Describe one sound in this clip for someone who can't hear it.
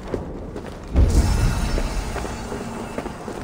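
A low magical whoosh swells suddenly.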